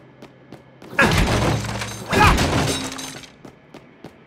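Crates smash and burst apart with a crash.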